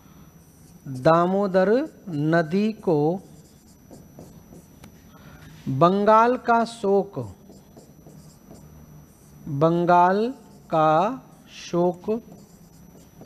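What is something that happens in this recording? A man speaks in short phrases, close to a microphone.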